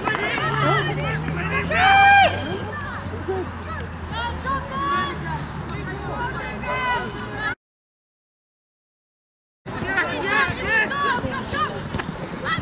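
Young women shout and call out to each other across an open pitch outdoors.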